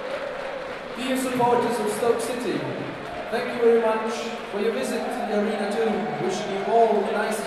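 A large crowd sings together loudly in an open stadium.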